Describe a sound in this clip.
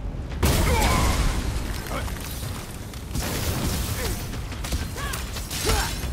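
Ice crackles and shatters in a video game fight.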